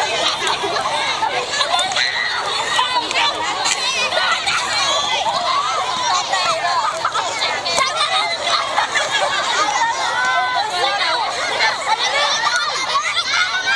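Many children chatter and shout excitedly outdoors.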